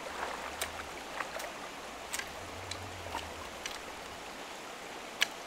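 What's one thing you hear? A shallow stream ripples and gurgles steadily outdoors.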